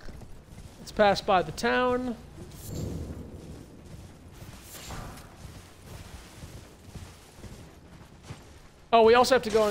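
A man speaks with animation into a microphone, in short bursts.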